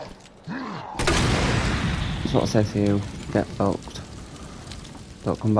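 A fire bursts out and roars loudly.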